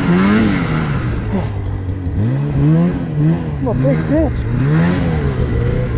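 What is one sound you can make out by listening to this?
Another snowmobile drives past nearby.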